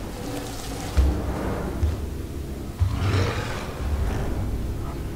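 Heavy footsteps thud slowly on a metal floor.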